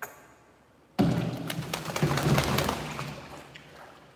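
A wet dog shakes water off its coat with a loud splattering.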